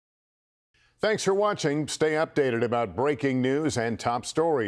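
A man speaks calmly and clearly into a microphone, like a newsreader.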